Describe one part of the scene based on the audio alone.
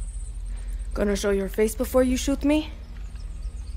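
A young woman speaks tensely at close range.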